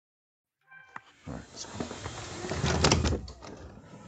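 A door opens with a clatter.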